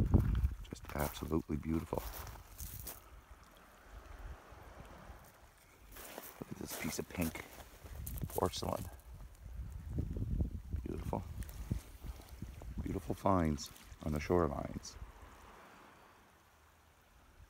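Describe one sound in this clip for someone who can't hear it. Small waves lap gently against pebbles.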